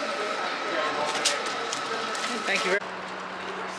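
A paper bag rustles as it is packed.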